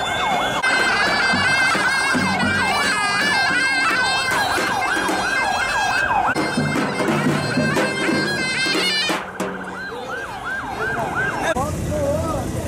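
A reed pipe plays a shrill, wavering tune up close.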